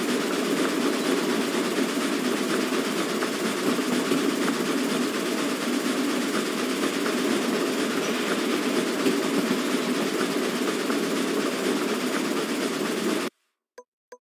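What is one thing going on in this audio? A steam train rumbles steadily along the tracks.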